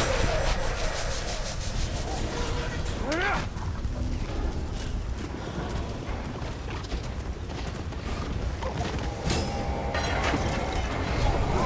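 Footsteps crunch on grass and dirt.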